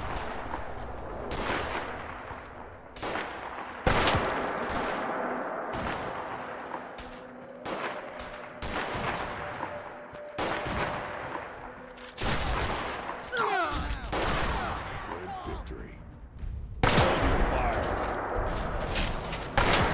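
Gunshots fire in loud bursts with echoing tails.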